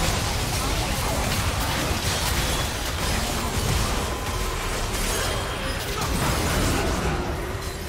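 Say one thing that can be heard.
Video game spell effects crackle and clash in a busy battle.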